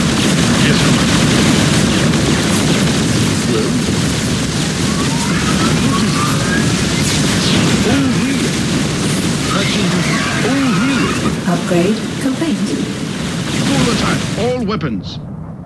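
Explosions boom amid the fighting.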